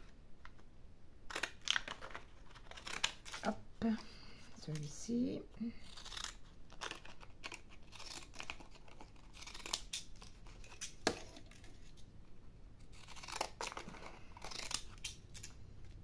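Paper card rustles and taps as hands handle it.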